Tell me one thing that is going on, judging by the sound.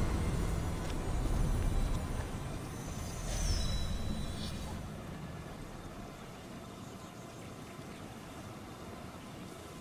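Fire crackles in braziers.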